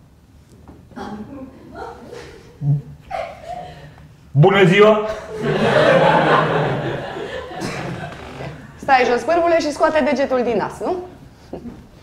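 An elderly woman speaks firmly.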